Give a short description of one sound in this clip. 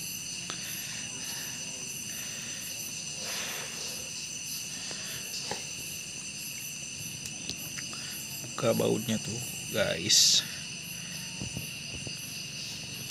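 Small plastic parts click and rattle.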